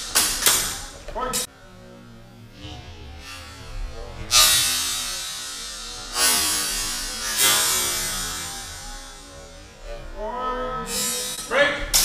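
Wooden swords clash and clatter in a large echoing hall.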